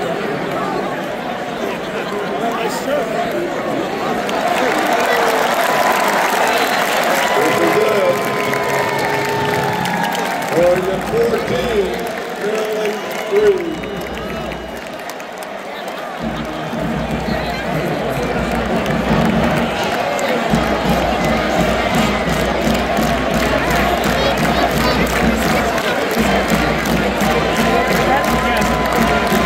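A large stadium crowd cheers and roars loudly outdoors.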